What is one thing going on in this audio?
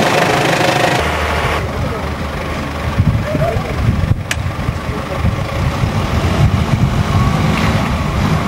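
Car engines hum as several vehicles drive along a road.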